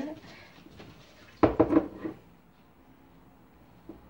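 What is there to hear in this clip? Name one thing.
A sponge squishes as it is pushed into a mug.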